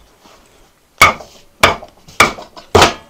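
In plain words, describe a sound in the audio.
A mallet thumps a knife down through a hard squash.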